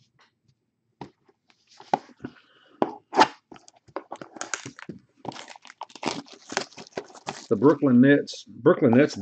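Foil wrapping crinkles and tears.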